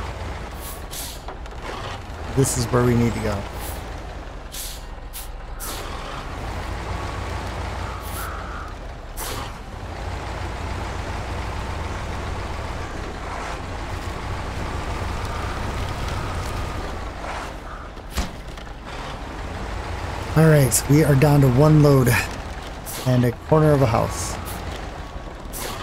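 Truck tyres churn and squelch through deep mud.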